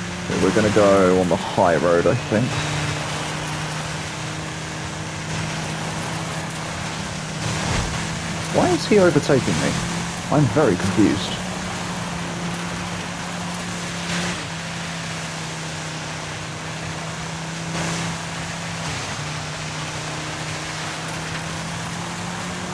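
Tyres crunch and hiss over loose gravel.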